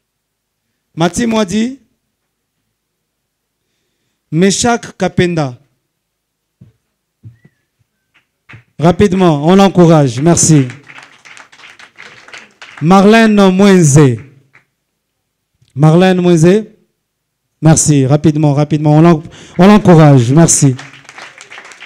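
A young man speaks loudly into a microphone, in short bursts with pauses.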